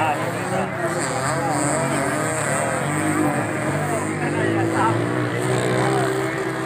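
Men nearby talk loudly.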